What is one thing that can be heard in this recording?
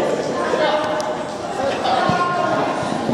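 A ball thuds off a foot.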